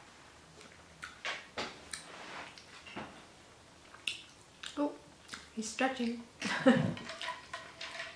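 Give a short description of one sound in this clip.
A young woman chews food with soft, wet sounds.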